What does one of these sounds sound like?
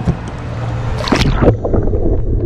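Water splashes as a hand plunges into a river.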